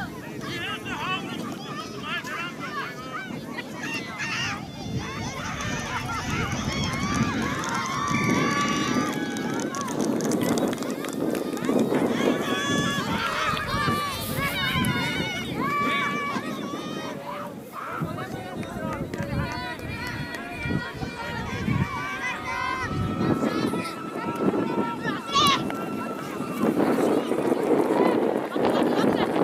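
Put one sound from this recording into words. A crowd of young players and onlookers shouts and calls out outdoors.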